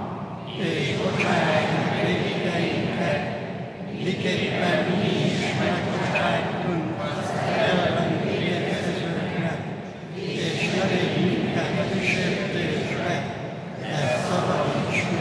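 An elderly man chants in phrases through a microphone in a large echoing hall.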